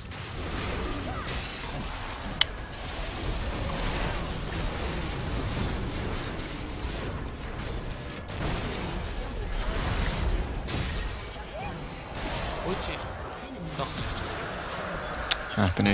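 Game spell effects whoosh, zap and clash in a busy fight.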